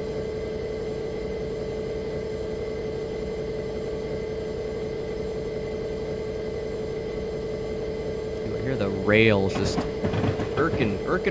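Rain patters on a windscreen.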